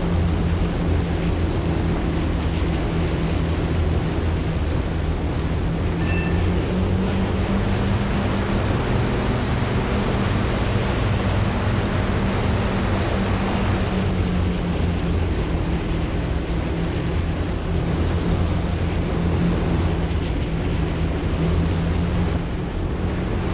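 Propeller engines of a large aircraft drone steadily and loudly.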